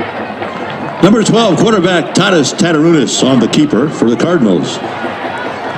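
A marching band plays a loud brassy burst of music.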